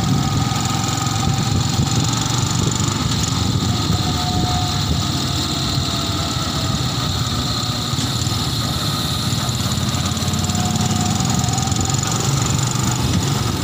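Other motorcycles pass by with their engines droning.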